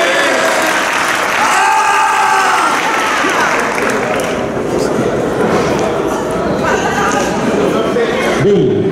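A young man speaks into a microphone over a loudspeaker in a large echoing hall.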